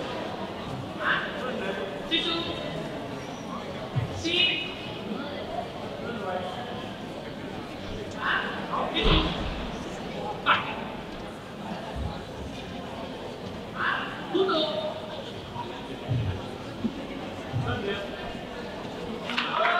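A woman gives short, sharp commands to a dog in a large echoing hall.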